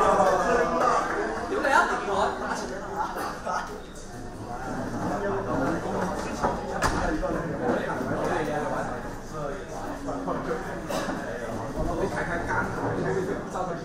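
An audience murmurs in the background.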